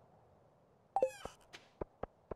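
A menu closes with a quick rising chime.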